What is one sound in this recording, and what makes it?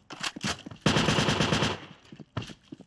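A submachine gun fires in a rapid burst.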